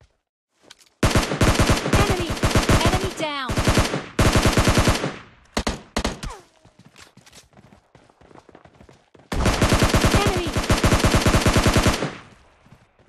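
Rapid automatic gunfire rings out in loud bursts.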